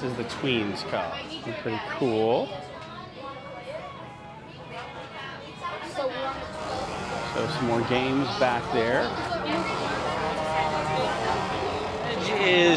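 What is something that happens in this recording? Children's voices chatter and call out around the room.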